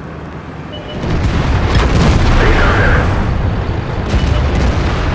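A tank cannon fires with a loud boom that rolls away.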